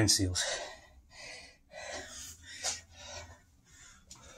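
A man breathes heavily, close by.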